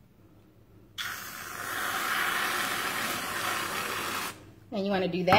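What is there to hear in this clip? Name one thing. An aerosol can of whipped cream sprays with a loud, steady hiss.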